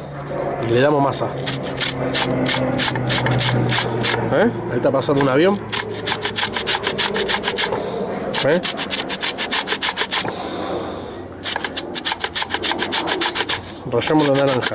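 An orange peel is grated in quick, rhythmic scrapes against a metal grater.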